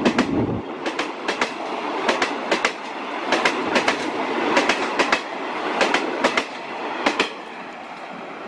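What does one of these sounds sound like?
Passenger train coaches rush past close by.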